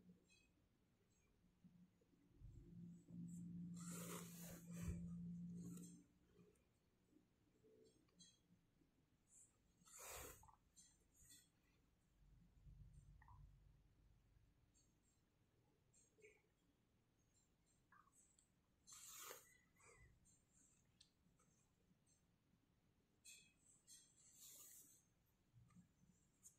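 Yarn rustles softly as a needle is pulled through crocheted fabric.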